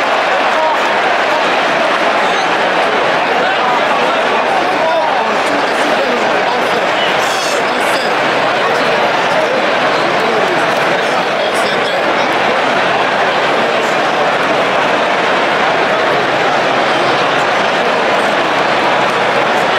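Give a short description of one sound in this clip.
A large stadium crowd roars and cheers steadily all around.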